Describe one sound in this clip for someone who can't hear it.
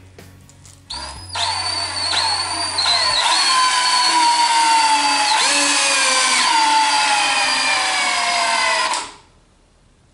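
A cordless drill whirs steadily, its pitch slowly dropping as it bores.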